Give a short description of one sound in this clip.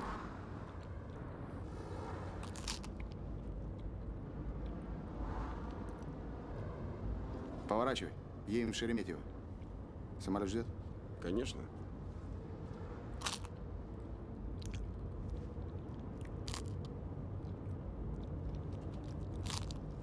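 A low road rumble fills the inside of a moving car.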